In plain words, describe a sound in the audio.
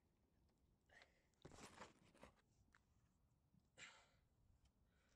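A hand scrapes and rubs against a vehicle's underside.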